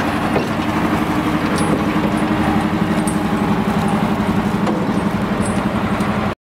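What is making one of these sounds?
A heavy truck's diesel engine rumbles steadily close by as it drives.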